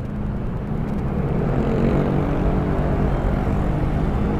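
Scooter engines hum nearby in slow traffic.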